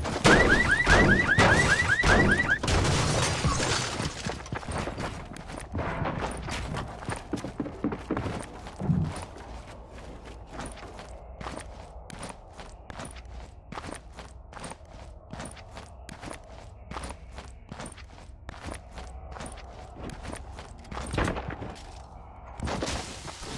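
Footsteps patter quickly along hard ground.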